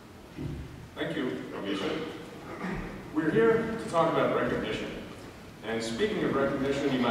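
An elderly man speaks calmly into a microphone through a loudspeaker.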